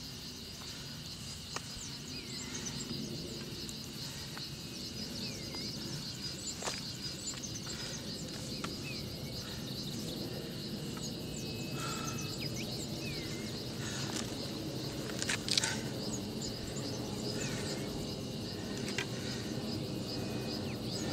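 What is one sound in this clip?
Footsteps scrape on rock.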